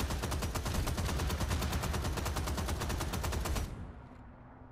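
A rapid burst of automatic gunfire rattles loudly.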